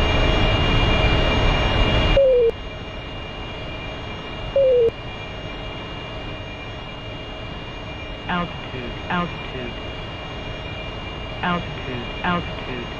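A jet engine roars loudly, then drops to a steady lower rumble.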